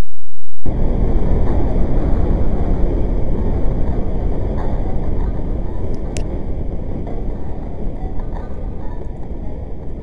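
A heavy truck engine rumbles loudly.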